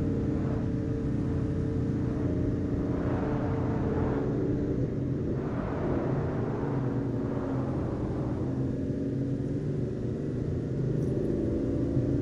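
Tyres roll and hiss on a paved road.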